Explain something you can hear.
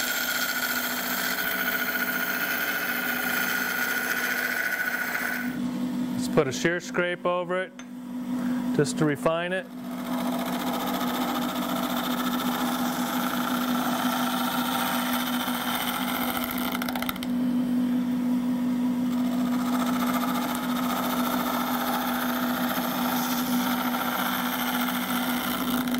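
A wood lathe spins with a steady motor hum.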